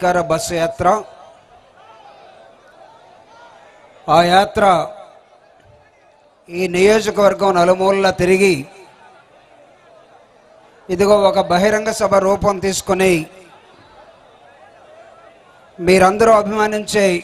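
A middle-aged man speaks forcefully into a microphone over loudspeakers, in bursts with pauses.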